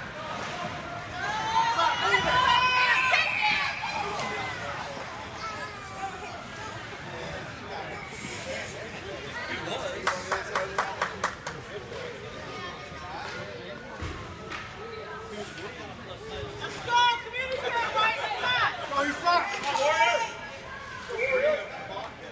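Young players shout and call out in a large echoing rink.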